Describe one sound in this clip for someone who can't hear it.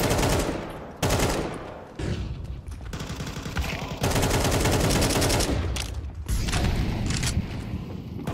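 An assault rifle fires in bursts in a video game.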